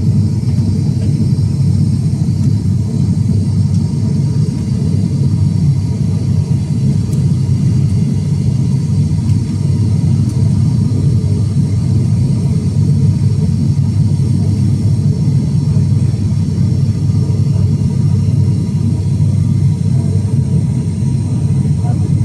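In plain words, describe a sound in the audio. A propeller engine drones loudly and steadily from close by, heard from inside a cabin.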